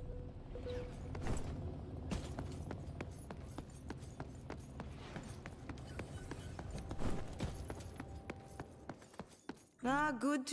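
Footsteps run quickly across a hard metal floor.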